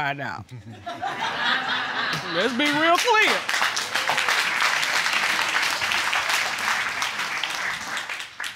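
An audience claps and cheers in a large room.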